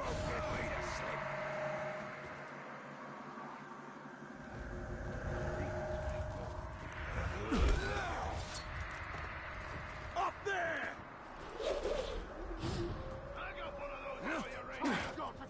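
Wind howls steadily.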